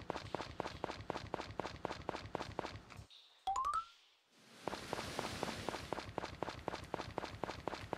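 Footsteps tread quickly and steadily over ground.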